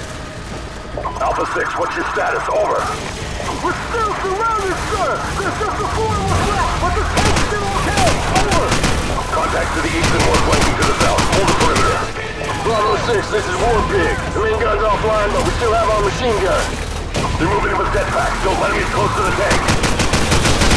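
Gunfire and explosions rumble in the distance.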